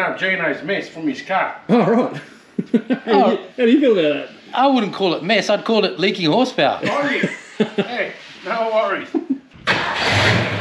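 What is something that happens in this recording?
A middle-aged man talks cheerfully close by.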